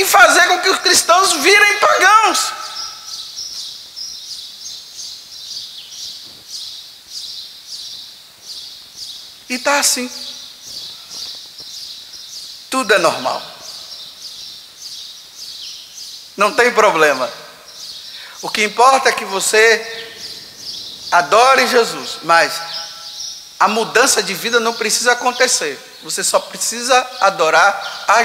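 An elderly man preaches with animation through a microphone in an echoing hall, pausing often.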